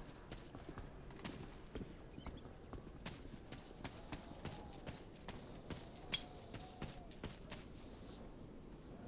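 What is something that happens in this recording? Footsteps thud steadily on wooden boards.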